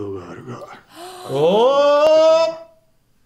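A young woman gasps and exclaims in surprise.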